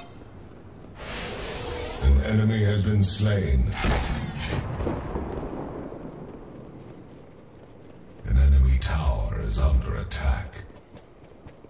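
Magical blasts boom and crackle loudly.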